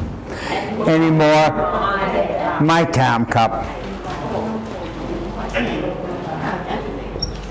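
An elderly man speaks calmly, as if lecturing.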